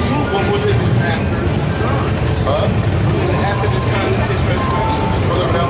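A crowd of people chatters loudly outdoors on a busy street.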